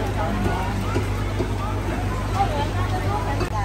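Water bubbles steadily from an air pump.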